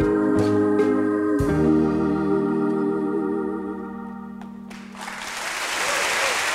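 A band holds a final chord that rings out and fades.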